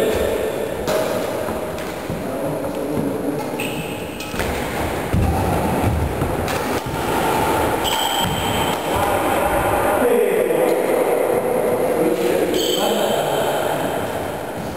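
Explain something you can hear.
Sports shoes squeak and patter on a wooden floor.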